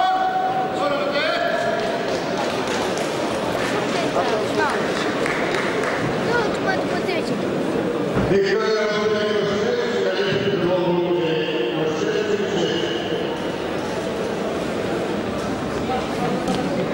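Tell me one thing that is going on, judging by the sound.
Spectators cheer and whistle loudly.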